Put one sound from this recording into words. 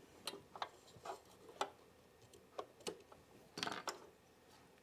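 Scissors snip thread with small sharp clicks.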